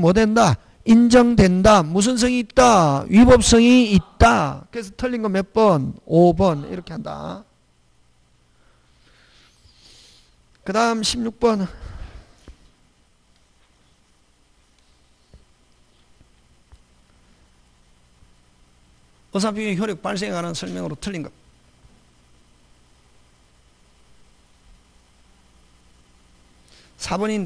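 A middle-aged man speaks through a microphone in a lecturing tone, with long pauses.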